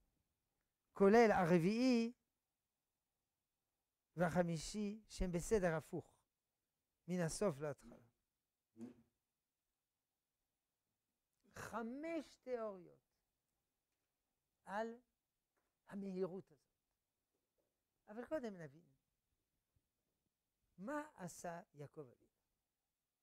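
An elderly man lectures in short phrases with pauses, heard close through a clip-on microphone.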